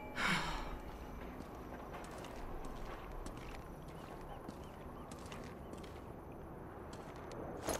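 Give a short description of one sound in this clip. Soft footsteps shuffle slowly on a hard floor.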